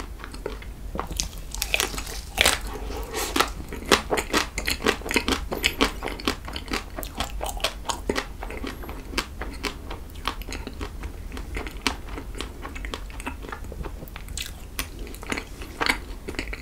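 A young man chews food with wet, sticky mouth sounds close to a microphone.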